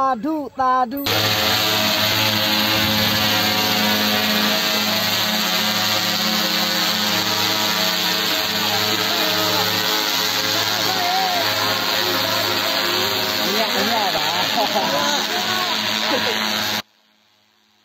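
A drone's rotors buzz loudly and steadily close by.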